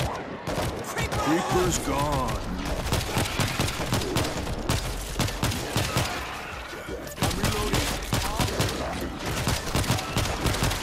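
Rapid gunfire rattles in a tight, echoing tunnel.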